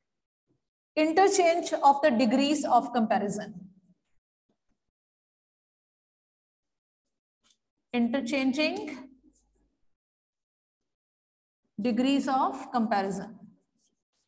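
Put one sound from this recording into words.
A woman speaks calmly, close by, in short phrases.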